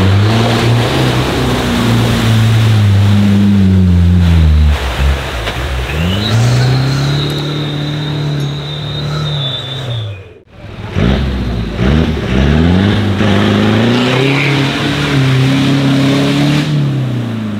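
Mud splashes and sprays loudly around spinning tyres.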